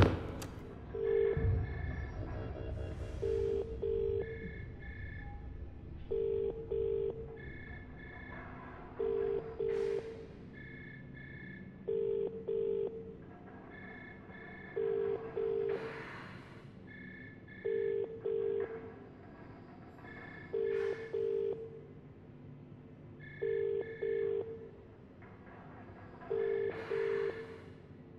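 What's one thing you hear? An electronic keypad beeps in quick double tones, repeating at a steady pace.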